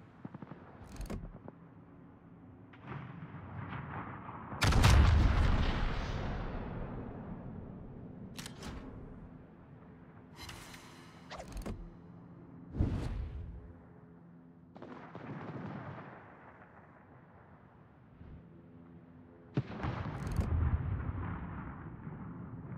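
Shells explode in the distance with dull thuds.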